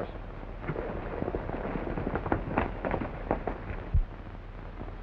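Horses' hooves clatter over rocky ground.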